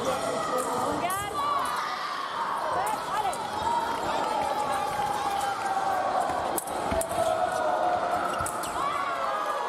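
Sport shoes squeak sharply on a hard floor in a large echoing hall.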